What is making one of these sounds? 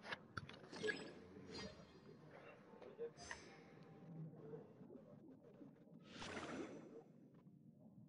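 Water swooshes in bursts as a swimmer glides underwater.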